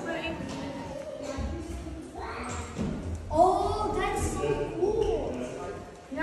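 Children and adults chatter and call out nearby.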